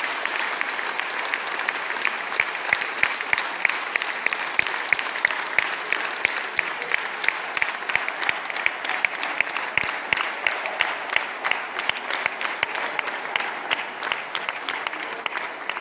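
A group of young women sings together.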